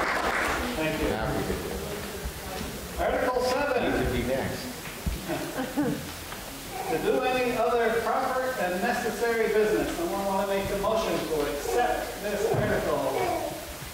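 A man speaks calmly into a microphone in an echoing hall.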